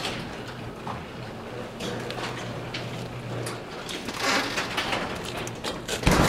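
A garage door rolls down with a rattling hum.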